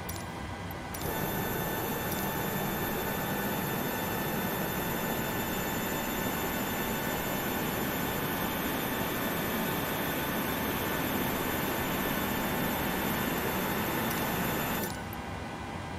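A jet engine idles nearby with a steady whine.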